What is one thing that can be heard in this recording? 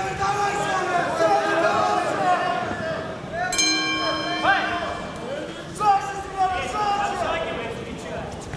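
A man speaks loudly in a large echoing hall.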